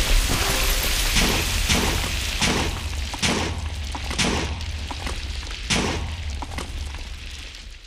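A game's explosions burst in quick sharp pops.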